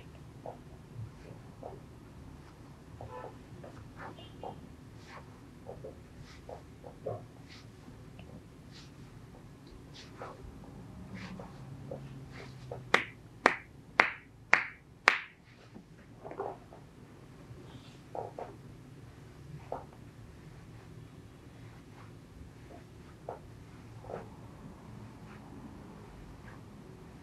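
Hands rub and knead cloth on a leg.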